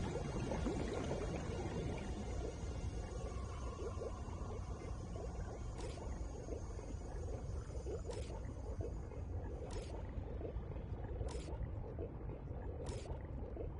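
Water rumbles and bubbles in a steady underwater hum.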